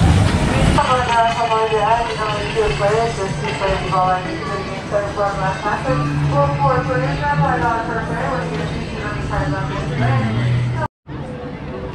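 Young women talk with animation close by.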